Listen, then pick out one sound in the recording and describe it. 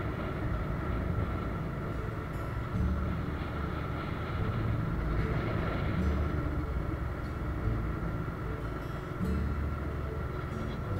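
A motorcycle engine hums while riding along at cruising speed.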